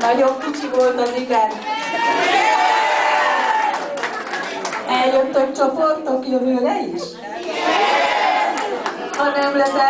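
A choir of elderly women sings together in a large room.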